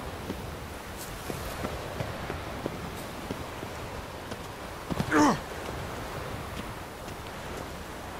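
Leafy branches rustle as someone pushes through bushes.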